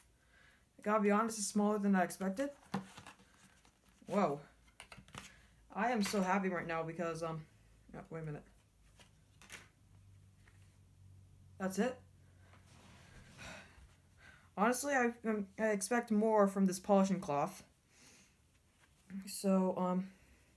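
Cardboard packaging rustles and scrapes as it is handled.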